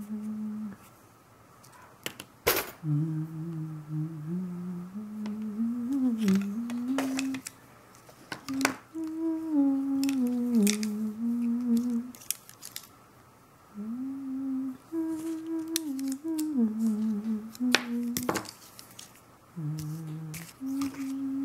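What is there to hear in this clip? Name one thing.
Paintbrushes clink and rattle against each other.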